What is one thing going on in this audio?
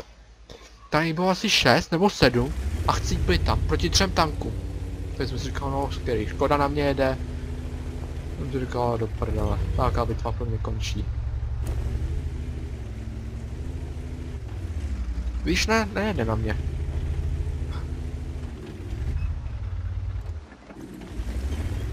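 A tank engine rumbles low and steadily as the tank moves.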